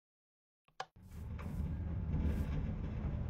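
A minecart rumbles along metal rails.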